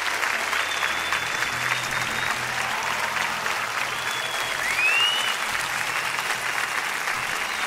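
A band plays live in a large hall.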